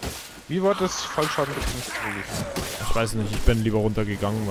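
A blade slashes and thuds into flesh.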